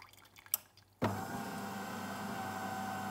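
A coffee machine pump hums steadily.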